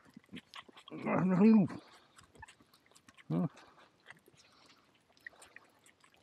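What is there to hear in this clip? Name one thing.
A sheep chews and nibbles at a hand.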